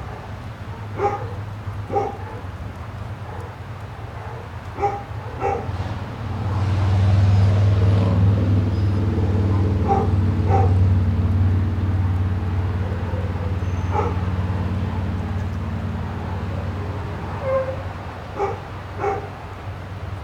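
Small dogs bark sharply now and then.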